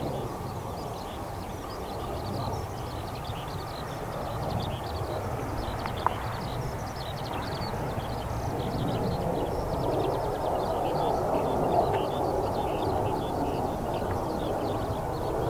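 A jet engine roars overhead, growing louder as the plane approaches.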